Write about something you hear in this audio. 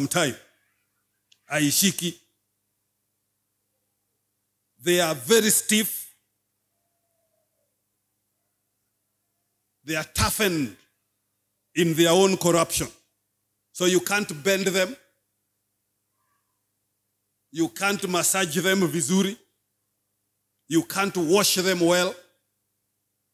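A middle-aged man speaks slowly and earnestly into a microphone, with long pauses.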